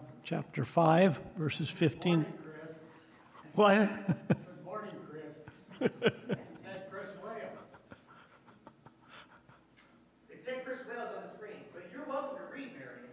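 A middle-aged man reads aloud calmly through a microphone in a room with some echo.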